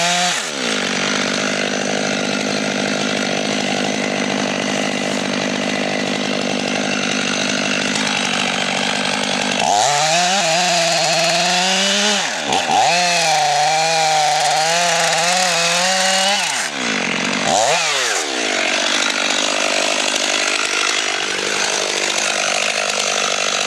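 A chainsaw runs loudly close by, its engine revving up and down as it cuts into wood.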